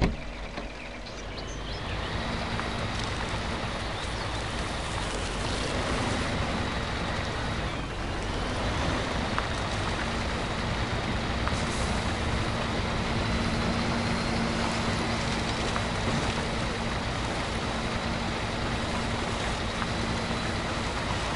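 A heavy truck engine rumbles steadily as the truck drives over rough ground.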